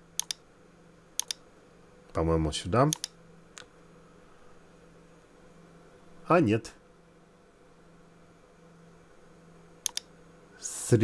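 A computer mouse clicks sharply in quick pairs.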